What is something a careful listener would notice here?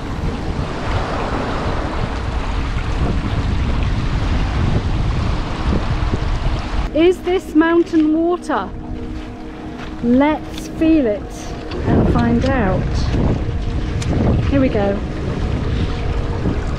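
Shallow water trickles and babbles gently over stones.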